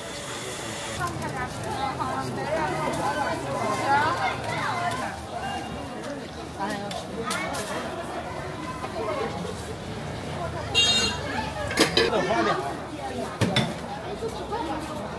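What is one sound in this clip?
A busy street crowd chatters all around outdoors.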